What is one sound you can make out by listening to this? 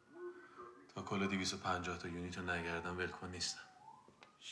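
A young man speaks in a low, calm voice nearby.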